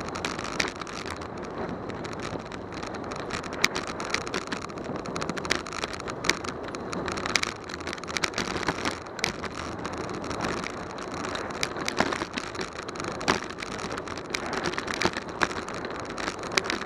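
Wind rushes steadily past a bicycle rider.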